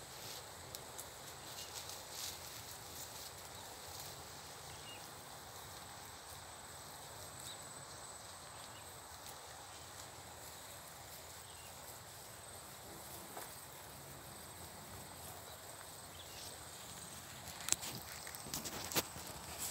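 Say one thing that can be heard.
Sheep tear and munch grass nearby.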